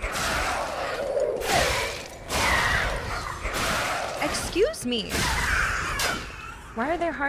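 Metal weapons clash and strike in quick bursts.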